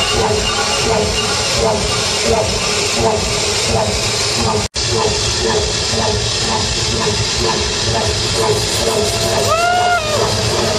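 Loud electronic dance music with a thumping beat plays through big speakers in a large echoing hall.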